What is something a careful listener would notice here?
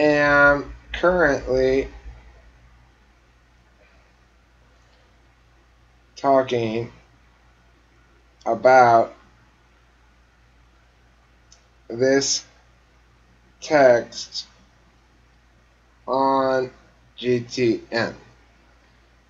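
A middle-aged man speaks with animation in short bursts over an online call.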